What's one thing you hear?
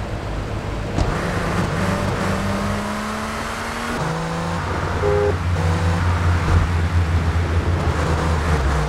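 A car engine roars as a sports car accelerates.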